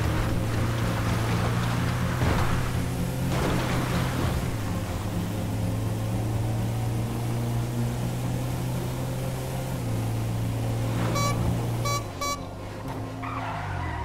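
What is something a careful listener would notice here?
Tyres roll over rough ground and then a road.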